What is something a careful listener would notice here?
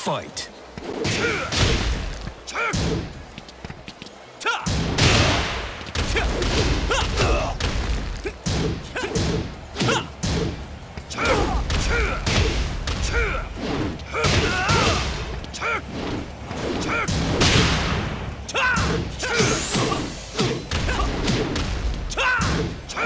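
Punches and kicks land with heavy smacking thuds, in quick bursts.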